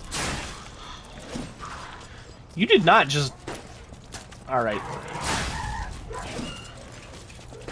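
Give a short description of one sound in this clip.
A sword swings and clangs in combat.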